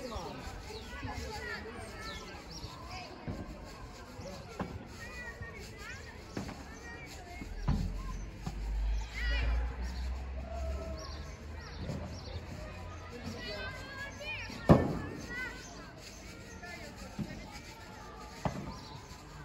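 Paddle rackets strike a ball with sharp pops.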